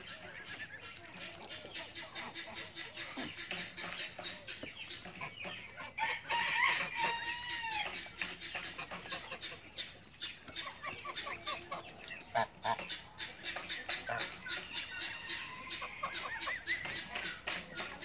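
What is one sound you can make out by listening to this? Geese honk and call nearby.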